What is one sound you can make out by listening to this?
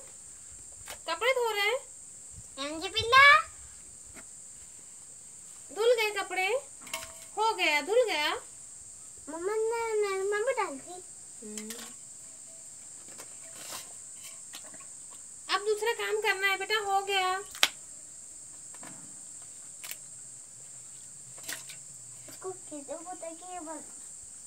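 A small child talks and babbles in a high voice close by.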